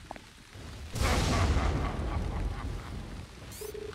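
Thunder crashes loudly and rumbles away.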